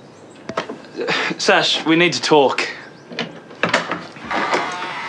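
A second young man talks back nearby.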